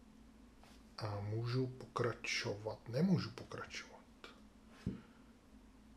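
Small game pieces click softly on a tabletop.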